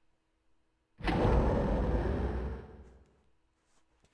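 Heavy metal elevator doors rumble and slide open.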